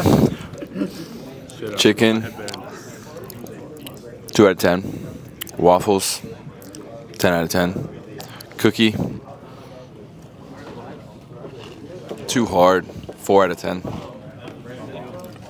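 A man talks casually nearby in short bursts.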